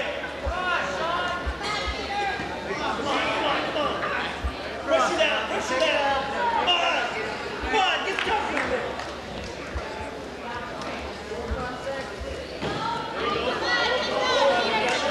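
Wrestlers thump and scuff against a mat.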